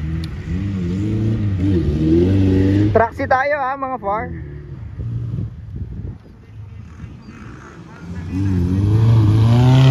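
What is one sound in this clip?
An off-road vehicle's engine revs and roars as the vehicle climbs over rough ground.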